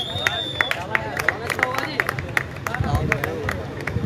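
Hands clap sharply in quick bursts.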